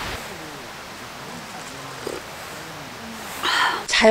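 A woman sips a hot drink from a cup.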